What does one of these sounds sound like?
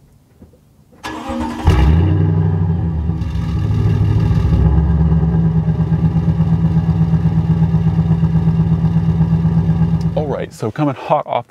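A pickup truck's engine cranks, starts and idles with a deep steady rumble.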